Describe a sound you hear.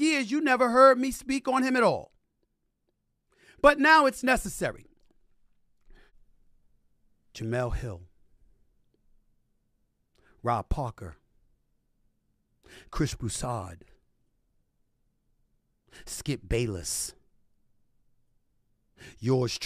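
A middle-aged man speaks forcefully into a microphone, in short bursts with pauses.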